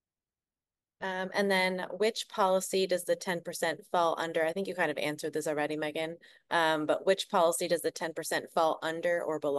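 A young woman speaks calmly and steadily over an online call.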